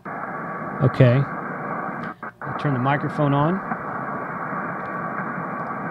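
Radio static hisses steadily from a loudspeaker.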